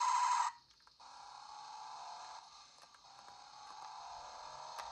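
A handheld game console plays a steady electronic engine hum.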